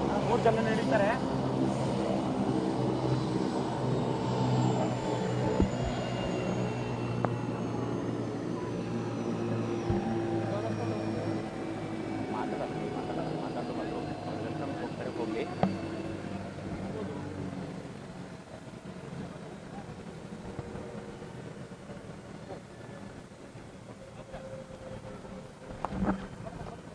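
A helicopter engine whines loudly and slowly winds down.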